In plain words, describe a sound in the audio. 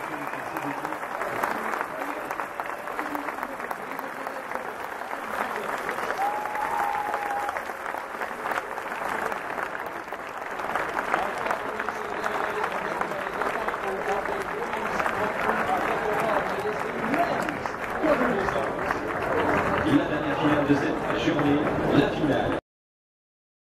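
Many people chatter and call out nearby.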